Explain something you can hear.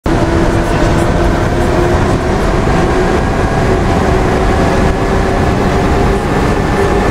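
Tyres rumble on a wet road.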